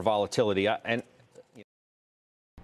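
A middle-aged man speaks calmly into a studio microphone.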